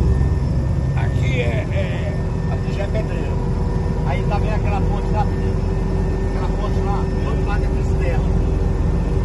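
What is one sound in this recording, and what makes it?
An elderly man talks with animation over the engine noise.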